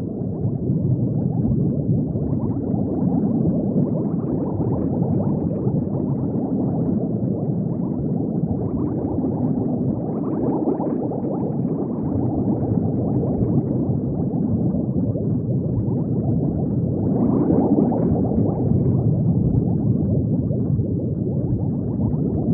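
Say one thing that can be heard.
Bubbles gurgle and rumble steadily underwater.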